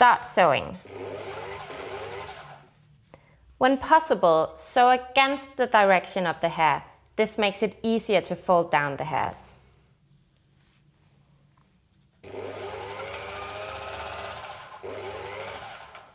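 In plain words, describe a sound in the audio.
A sewing machine whirs as it stitches.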